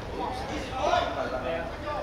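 A football is kicked hard from a distance.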